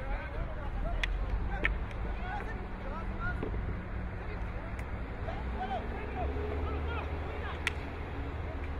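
A hockey stick sharply strikes a ball outdoors.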